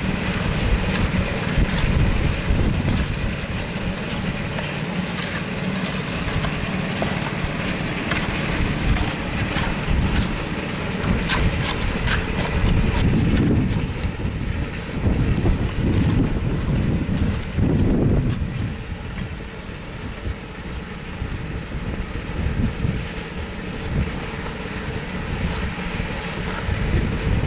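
Wind blows across an outdoor site.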